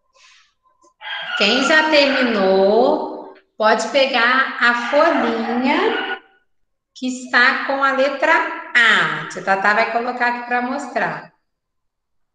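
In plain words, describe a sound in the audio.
A young woman speaks with animation into a microphone on an online call.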